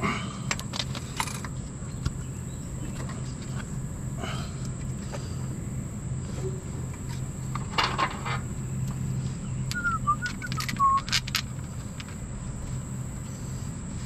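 Metal parts clink and scrape.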